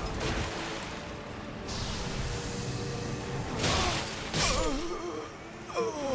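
Swords clash and slash.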